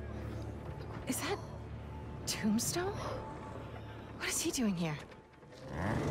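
A young man asks a wary question close by.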